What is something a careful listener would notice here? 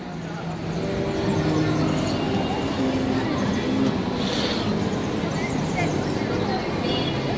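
People chatter and talk nearby outdoors on a busy street.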